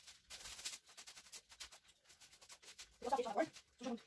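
A stiff broom scrubs a tiled floor with quick strokes.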